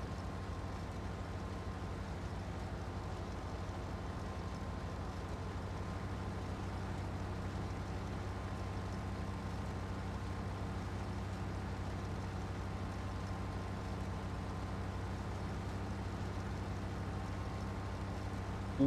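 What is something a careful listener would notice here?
Crop rustles and crackles as a harvester cuts through it.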